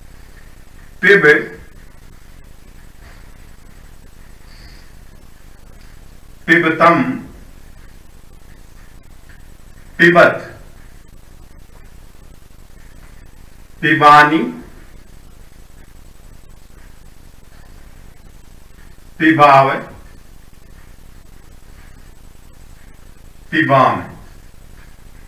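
A man speaks short words in brief bursts, with long pauses between them.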